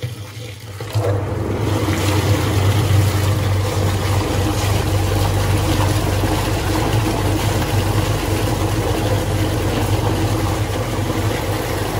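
A mixing machine starts and hums steadily.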